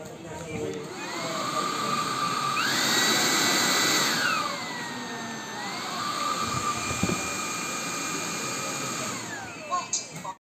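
A vacuum cleaner motor whirs, rising and falling in pitch as its power setting changes.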